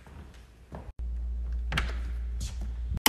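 A door handle clicks as it turns.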